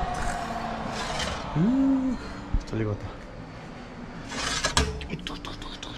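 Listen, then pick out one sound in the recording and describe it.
A metal baking tray clatters.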